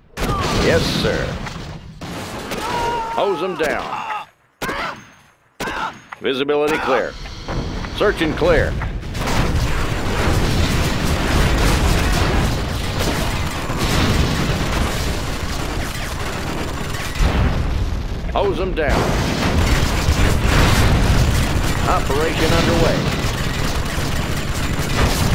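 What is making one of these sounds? Explosions boom and rumble again and again.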